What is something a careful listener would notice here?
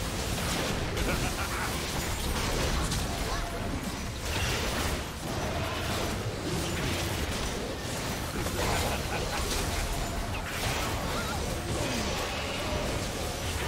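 Spell effects crackle and boom as game characters fight.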